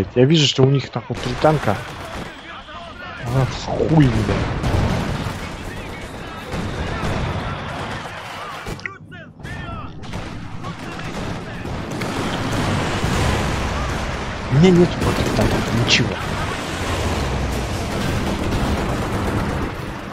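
Explosions boom and rumble in a battle.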